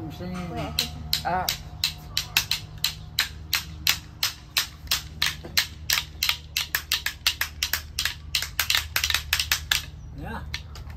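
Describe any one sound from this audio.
Wooden sticks clack together rapidly and sharply.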